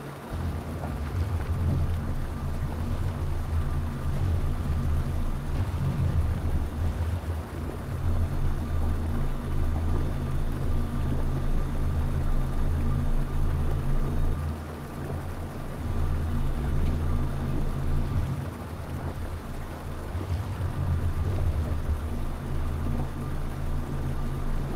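A magical beam crackles and hums steadily.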